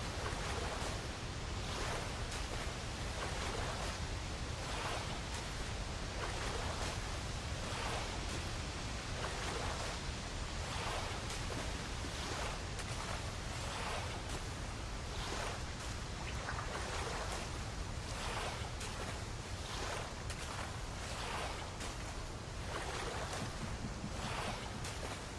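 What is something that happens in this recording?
Water splashes with rhythmic strokes as a swimmer paddles along.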